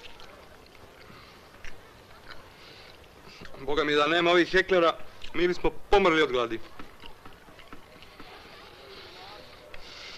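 A man chews food with his mouth full.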